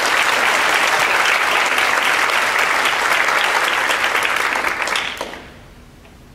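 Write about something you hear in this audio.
An audience applauds in a large echoing hall, then the clapping dies away.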